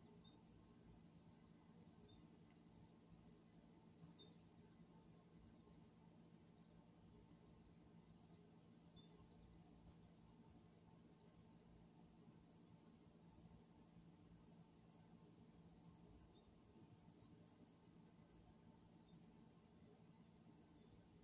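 An outdoor air conditioner unit hums steadily.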